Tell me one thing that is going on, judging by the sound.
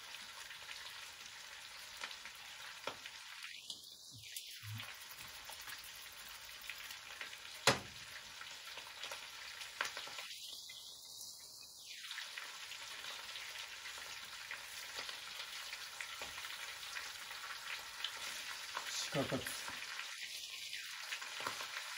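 Food sizzles and hisses in a frying pan.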